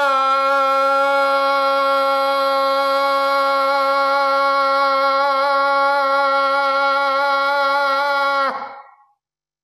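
An older man sings one long, steady open-mouthed tone through a microphone, which then stops abruptly.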